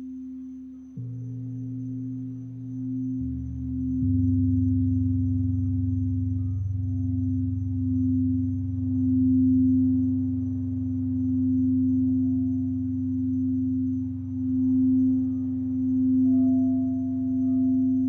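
A large gong sounds a deep, low drone that swells in.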